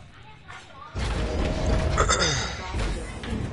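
A heavy metal door slides open with a loud rumble.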